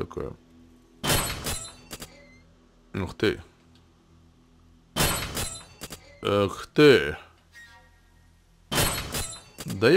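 A metal gate clangs loudly as it is kicked.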